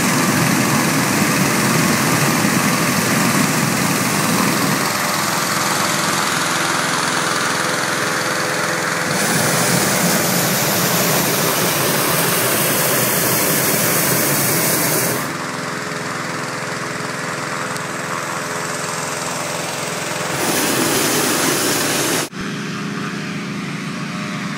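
A powerful inflation fan engine roars steadily nearby.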